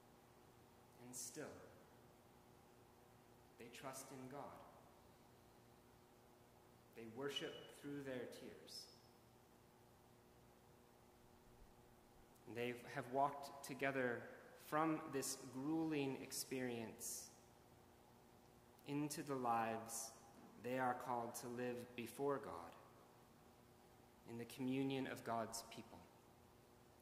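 A man speaks slowly and calmly through a microphone in a large echoing hall, with long pauses.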